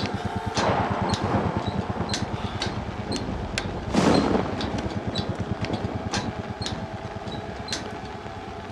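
Metal ladder rungs clank as someone climbs.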